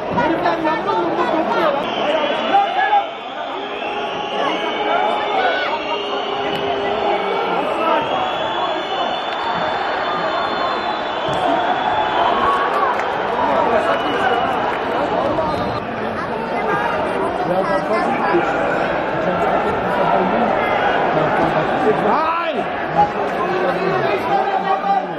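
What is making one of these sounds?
A crowd murmurs and cheers in an open stadium.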